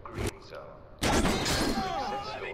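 A sharp blow strikes hard.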